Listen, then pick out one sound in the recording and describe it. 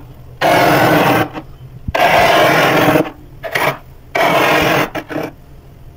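A metal spoon scrapes through thick, flaky freezer frost in loud crunching bursts.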